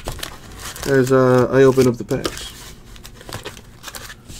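Foil card packs rustle and crinkle as hands move them.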